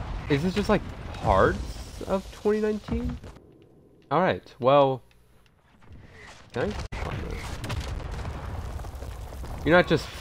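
A grenade explodes with a loud boom nearby.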